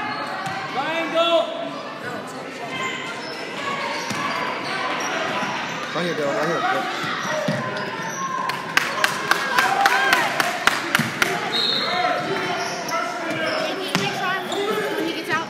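Spectators call out and chatter in a large echoing gym.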